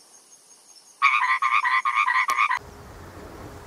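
A tree frog croaks in a fast pulsing series.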